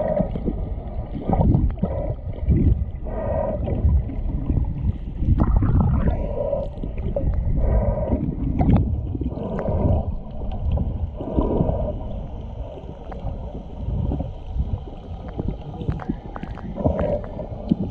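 Water churns and rumbles, heard from underwater.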